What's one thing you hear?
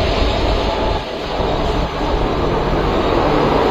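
A diesel locomotive rumbles past close by.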